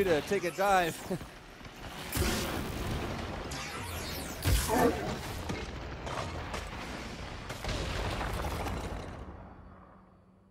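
Loud energy blasts and explosions crash and roar.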